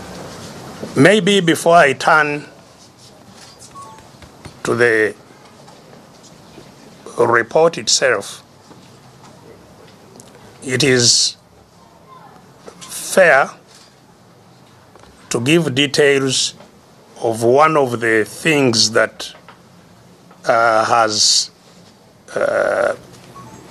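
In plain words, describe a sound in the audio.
A middle-aged man speaks in short, emphatic bursts, heard through a microphone.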